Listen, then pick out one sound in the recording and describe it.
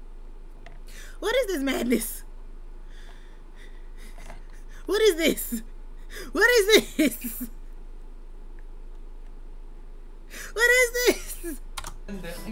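A young woman laughs loudly in bursts close to a microphone.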